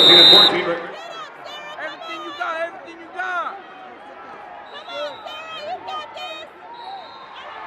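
Young women shout and cheer excitedly close by.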